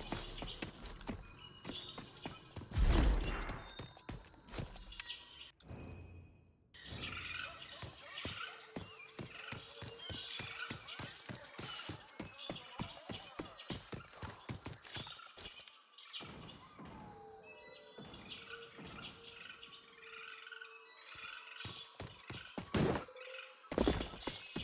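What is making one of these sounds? Footsteps crunch steadily over dirt and rock.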